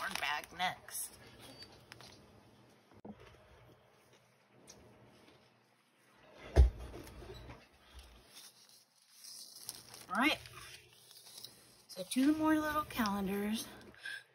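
Paper rustles and crinkles as pages are handled and turned.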